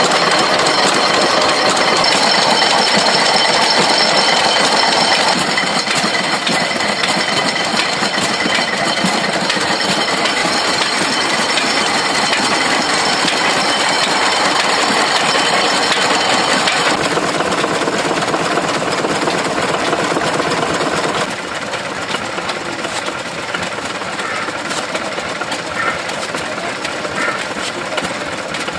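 Old stationary engines chug and pop steadily outdoors.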